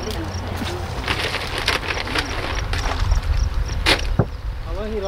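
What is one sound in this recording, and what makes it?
A plastic bucket rustles and knocks as a man handles it.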